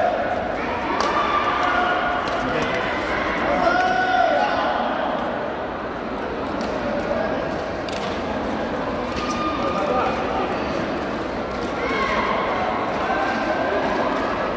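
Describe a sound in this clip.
Shuttlecocks are struck with sharp racket pops in a large echoing hall.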